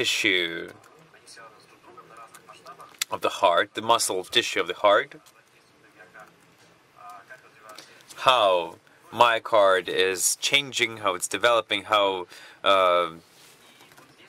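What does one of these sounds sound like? A young man speaks calmly through a microphone, as on an online call.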